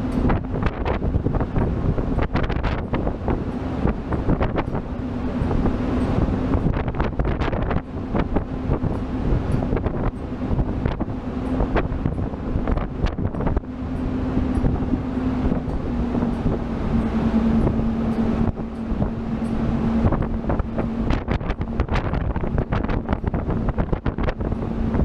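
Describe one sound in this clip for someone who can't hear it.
Wind buffets loudly, as if outdoors on open water.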